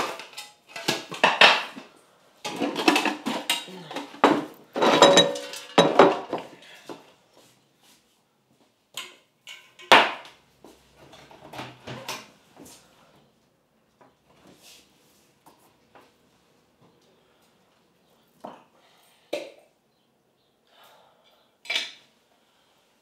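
Crockery and pans clatter and clink nearby.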